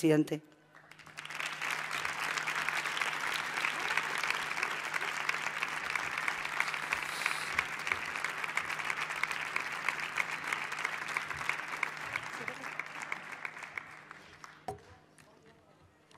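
An audience applauds steadily and the clapping fades away.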